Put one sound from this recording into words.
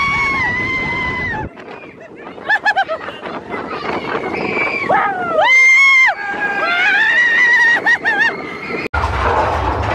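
Young riders scream loudly and excitedly close by.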